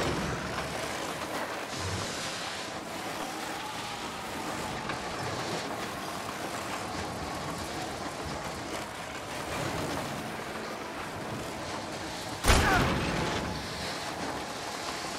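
A sled's runners hiss steadily over ice and snow.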